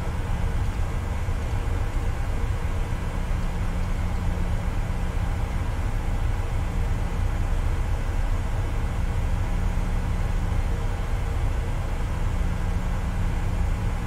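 Jet engines hum steadily with a low, droning rumble.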